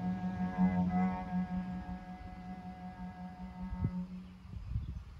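A cello plays a sustained low note outdoors.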